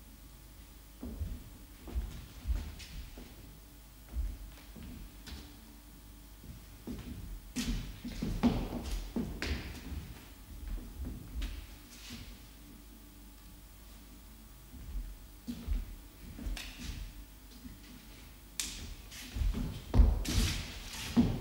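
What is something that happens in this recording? Footsteps thud and shuffle on a wooden floor in a room with a slight echo.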